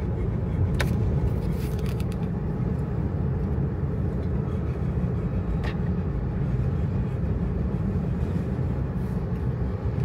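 An engine hums low inside a moving car.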